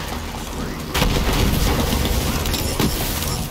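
An energy blast bursts with a loud crackling rush.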